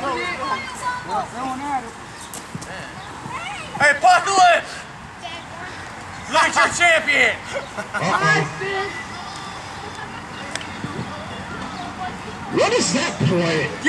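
A crowd of men and women shouts and cheers outdoors.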